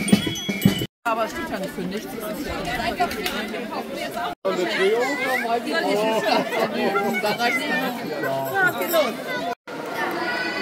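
A crowd of adults and children chatters nearby.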